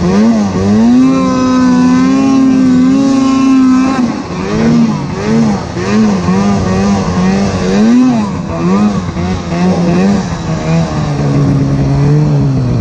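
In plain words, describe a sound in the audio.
A snowmobile engine roars close by, revving up and down.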